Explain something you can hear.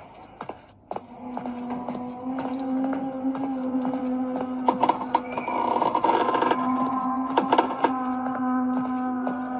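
A video game plays eerie, droning music through small tablet speakers.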